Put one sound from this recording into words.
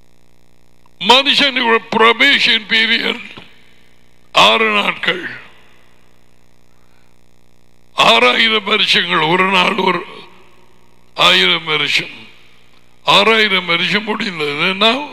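A middle-aged man speaks with animation into a headset microphone, close by.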